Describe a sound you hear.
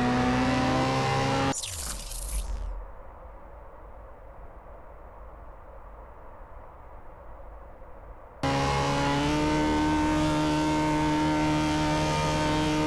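A car engine revs high and steady.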